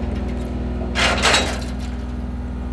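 Brush crackles and snaps under a machine.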